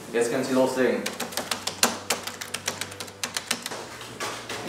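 Keys on a computer keyboard click rapidly.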